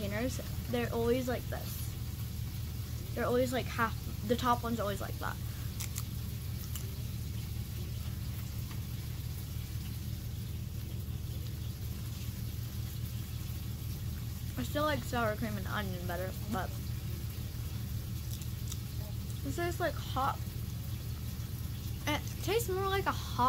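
A young girl speaks close by, in a lively tone.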